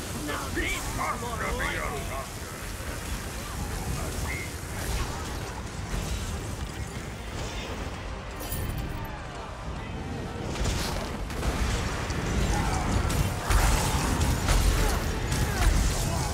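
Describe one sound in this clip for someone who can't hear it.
Weapons clash and thud.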